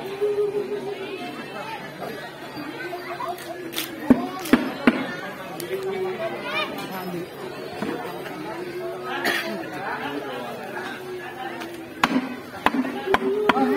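A crowd of men and women talks and calls out nearby, outdoors.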